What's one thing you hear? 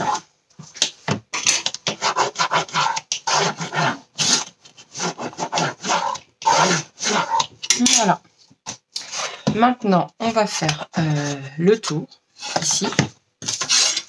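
Cardboard rustles and scrapes.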